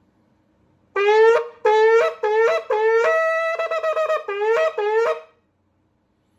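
A man blows a horn in short, quick bursts.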